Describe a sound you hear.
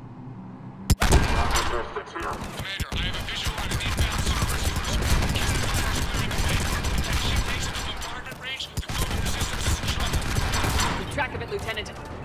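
Rifles fire in rapid, loud bursts.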